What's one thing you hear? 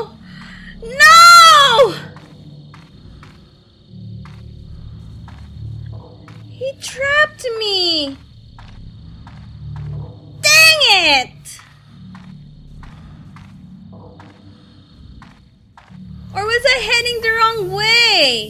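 A young girl squeals and talks excitedly into a microphone.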